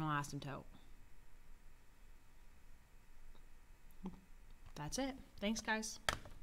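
Calculator buttons click softly as they are pressed.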